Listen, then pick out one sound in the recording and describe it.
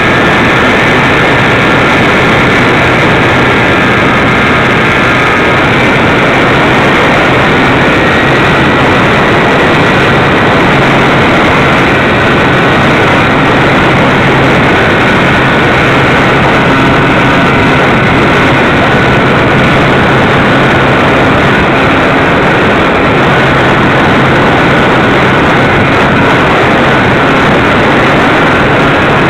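A small propeller engine drones loudly and steadily close by.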